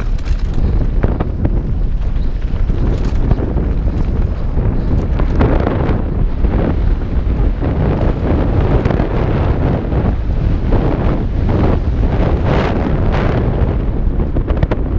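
Bike tyres crunch and rattle over a dirt trail.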